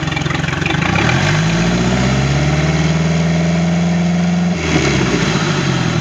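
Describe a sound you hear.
A boat engine revs up and settles again.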